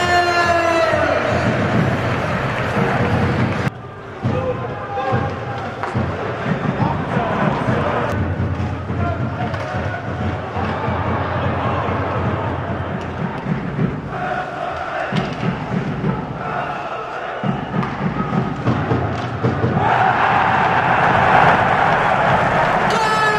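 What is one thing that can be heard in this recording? A crowd in a large arena cheers and shouts.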